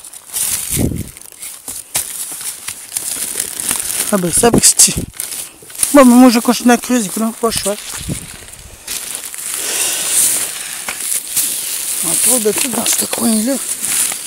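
Plastic bags rustle and crinkle close by.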